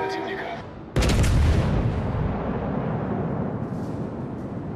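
Heavy naval guns fire with a deep, booming blast that rumbles away.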